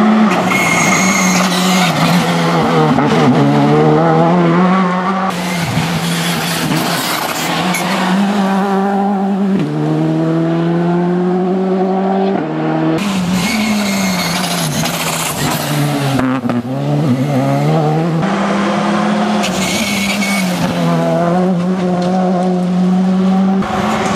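A rally car engine roars close by, revving up and down as it races past.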